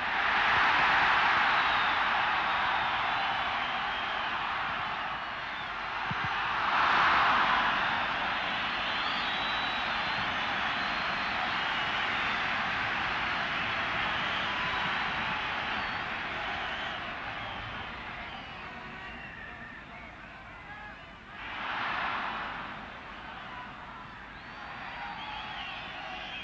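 A large stadium crowd roars and cheers throughout, swelling in loud surges.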